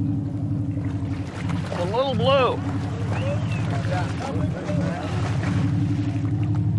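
A large fish splashes and thrashes in the water beside a boat.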